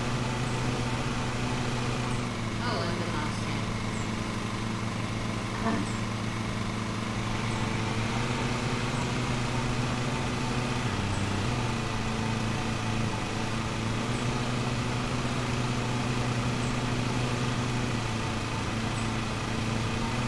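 A lawn mower engine drones steadily.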